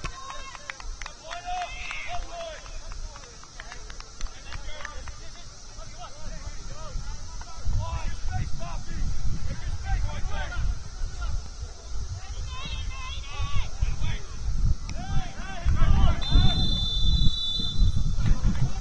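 Players call out to each other from across an open field.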